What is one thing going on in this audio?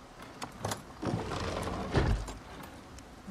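A wooden cabinet door creaks open.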